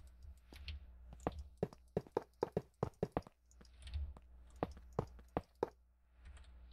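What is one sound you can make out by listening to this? Blocks are placed with quick soft clicks.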